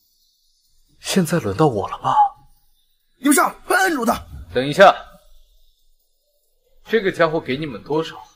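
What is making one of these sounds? A young man speaks calmly and coldly close by.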